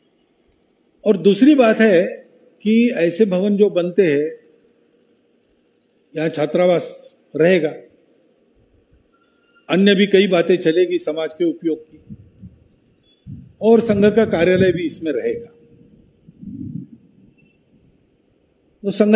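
An elderly man speaks with emphasis through a microphone and loudspeakers, pausing between phrases.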